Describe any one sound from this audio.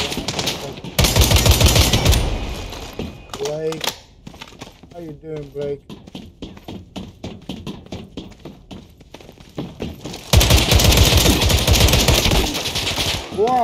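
Gunfire crackles loudly in rapid bursts.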